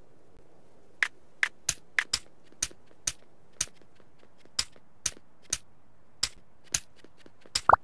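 Short menu clicks tick one after another.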